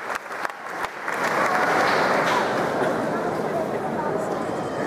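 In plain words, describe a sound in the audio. A crowd cheers and chatters loudly.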